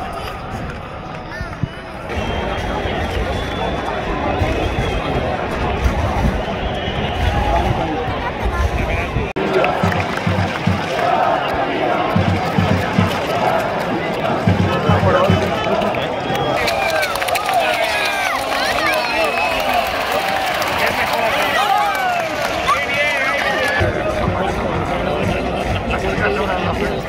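A large stadium crowd chants outdoors.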